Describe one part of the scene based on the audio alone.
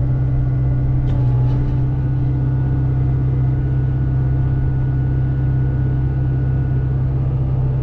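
A diesel engine hums steadily close by.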